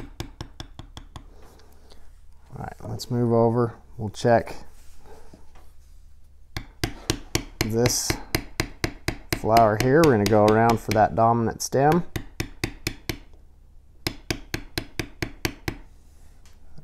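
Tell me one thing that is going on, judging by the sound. A mallet taps rapidly on a metal stamping tool.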